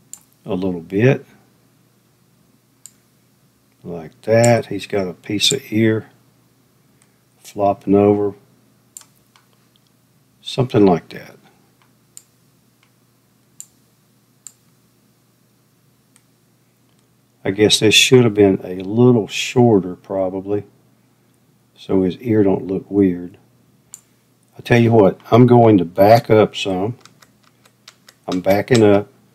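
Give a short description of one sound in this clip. An older man talks calmly into a close microphone, in short bursts with pauses.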